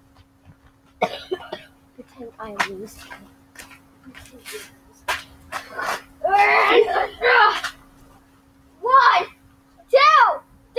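A young boy shouts and squeals excitedly close by, outdoors.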